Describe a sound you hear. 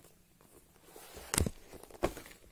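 Paper rustles as a sheet is moved.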